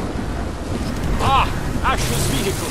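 A car engine roars as a car drives close by.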